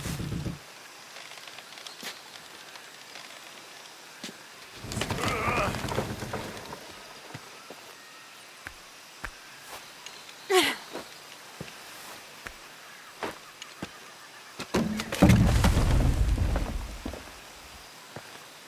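Footsteps crunch over rocks and leaves.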